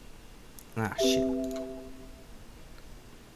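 A computer error chime sounds once.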